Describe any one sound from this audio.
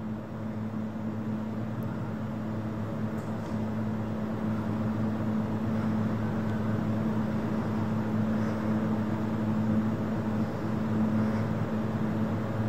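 A boat engine hums steadily, slowly growing louder as it approaches.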